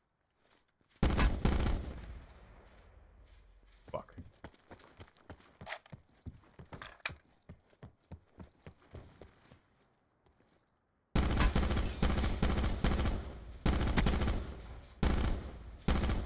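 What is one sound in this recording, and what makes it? A rifle fires rapid, loud shots.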